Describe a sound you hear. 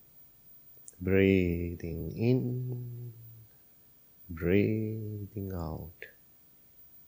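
A man chants in long, drawn-out tones, close by.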